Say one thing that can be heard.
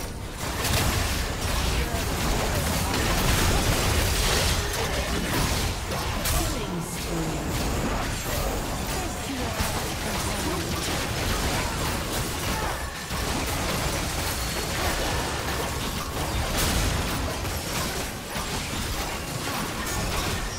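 Magic blasts whoosh and crash in a fast, busy fight.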